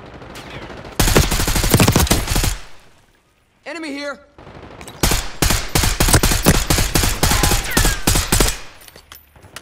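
An automatic rifle fires in rattling bursts.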